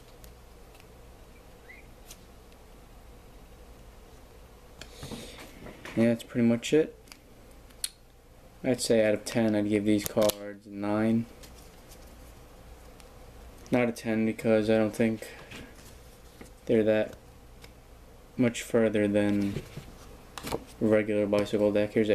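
Playing cards rustle softly as hands handle them.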